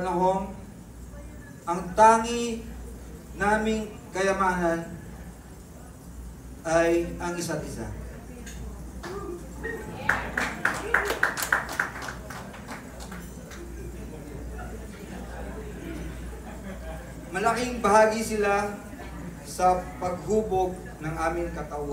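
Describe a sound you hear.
A man sings into a microphone, heard through a loudspeaker in an echoing room.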